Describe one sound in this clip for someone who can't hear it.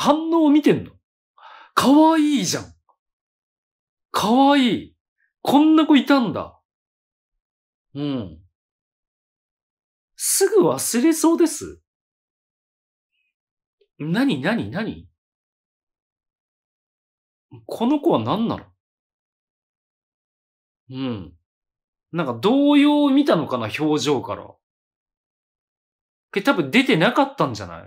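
A man speaks close to a microphone in short, animated bursts with pauses between them.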